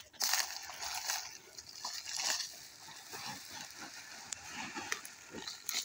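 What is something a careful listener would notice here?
A plastic sack rustles and crinkles.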